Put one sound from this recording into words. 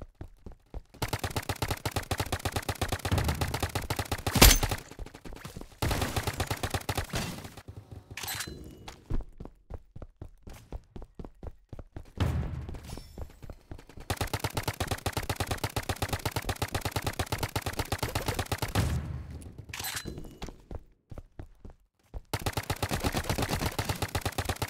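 A toy blaster fires in rapid bursts of shots.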